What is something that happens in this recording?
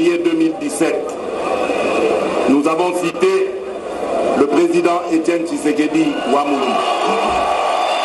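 A man speaks formally through a microphone outdoors.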